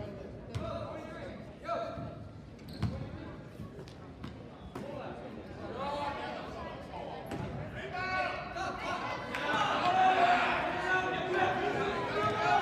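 A basketball bounces on a hard court floor.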